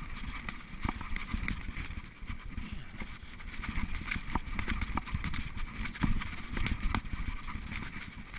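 Bicycle tyres rumble and rattle over a rough dirt trail.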